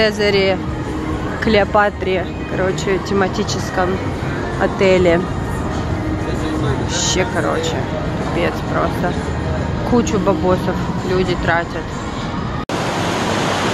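Slot machines chime and jingle with bright electronic tones.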